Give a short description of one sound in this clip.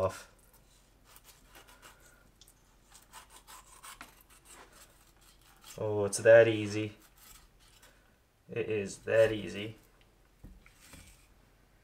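A knife scrapes and cuts through raw fish.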